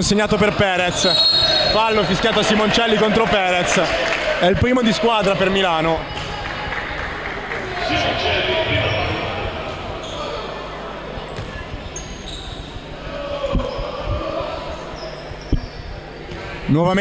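Sneakers squeak sharply on a wooden court in an echoing hall.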